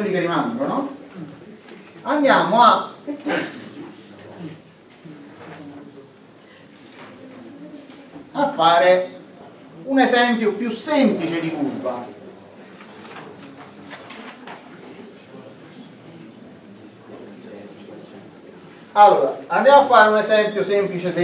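A man lectures in a calm, steady voice.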